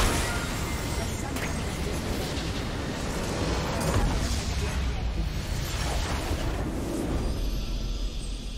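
A base structure explodes with a loud, rumbling blast.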